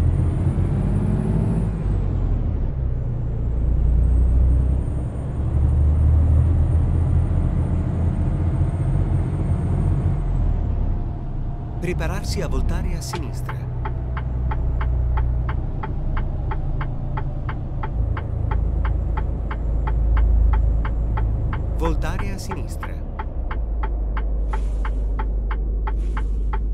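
A truck engine rumbles steadily at a low pitch.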